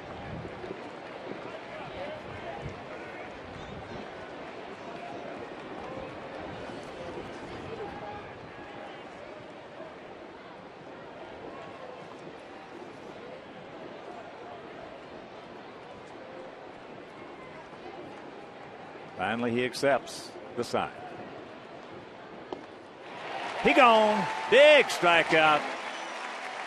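A large crowd murmurs steadily outdoors.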